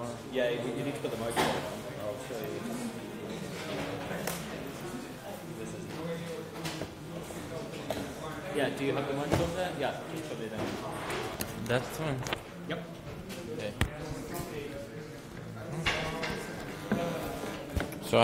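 A man talks calmly into a microphone in a large echoing hall.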